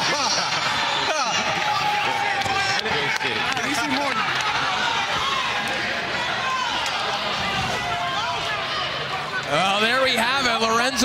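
A crowd of people chatters and cheers in a large echoing hall.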